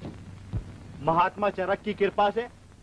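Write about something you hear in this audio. A man speaks with agitation among a group of men.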